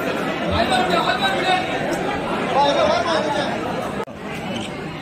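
A man chants loudly nearby.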